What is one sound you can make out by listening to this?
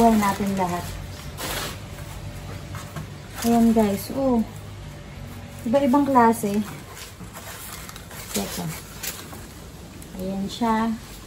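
A young woman speaks close up, calmly and warmly.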